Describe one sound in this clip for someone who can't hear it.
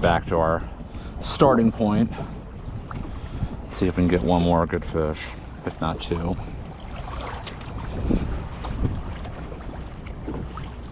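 Water laps against the hull of a small boat.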